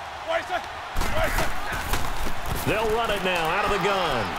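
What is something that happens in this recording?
Football players crash together with heavy thuds.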